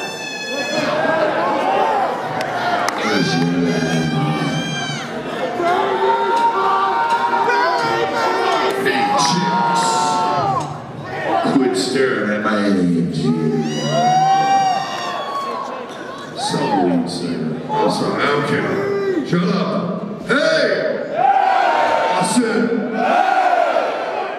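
Electric guitars play.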